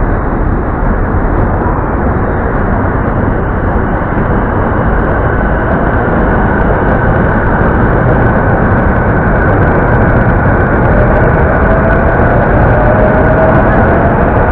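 A city hums steadily in the distance.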